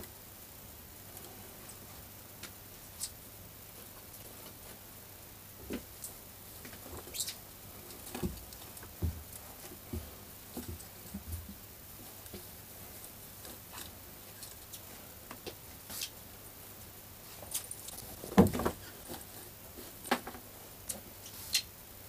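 Fabric rustles and swishes as clothes are laid down and smoothed.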